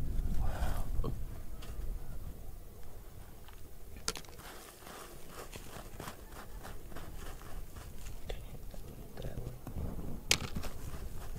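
Small stones click and rattle against rock.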